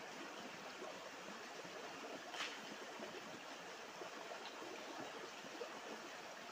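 A shallow stream rushes and babbles over rocks close by.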